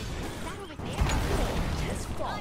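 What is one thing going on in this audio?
A large explosion bursts with a deep rumble.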